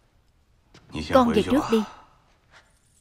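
A young woman speaks tensely, close by.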